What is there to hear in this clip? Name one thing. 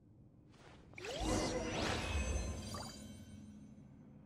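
A game plays a bright, shimmering chime.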